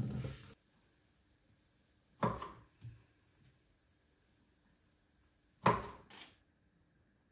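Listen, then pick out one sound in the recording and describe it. A knife chops on a cutting board with sharp knocks.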